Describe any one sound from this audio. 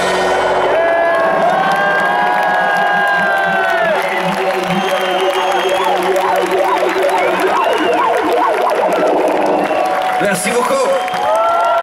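A band plays loud live music through large speakers outdoors.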